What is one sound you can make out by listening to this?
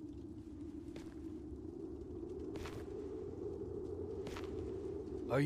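Heavy footsteps tread slowly on a hard floor.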